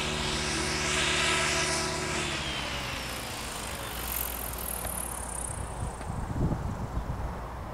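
A jet engine roars loudly overhead and slowly fades.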